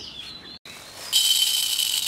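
Water pours noisily into a clay bowl.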